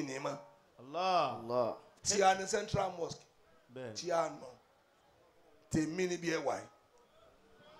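An elderly man chants loudly and with feeling into a microphone.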